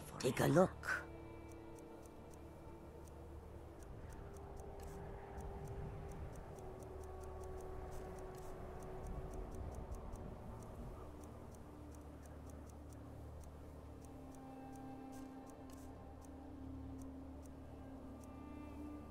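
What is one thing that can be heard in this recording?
Soft clicks tick as a menu is scrolled through.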